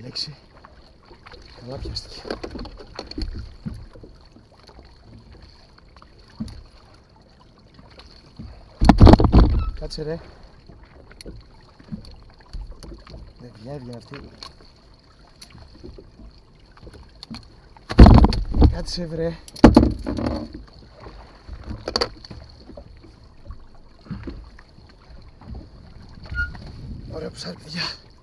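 Water laps gently against a small boat.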